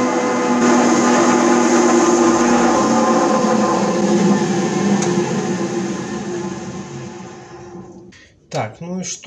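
A lathe motor hums steadily, then winds down and stops.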